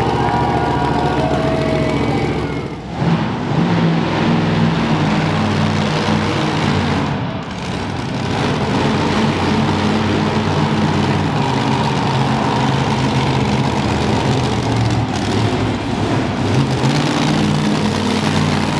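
A large crowd cheers in an echoing arena.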